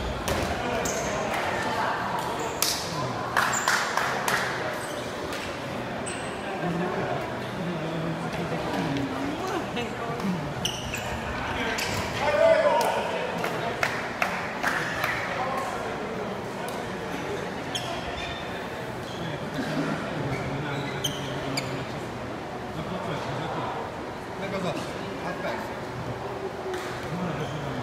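A shuttlecock is struck with rackets in sharp taps.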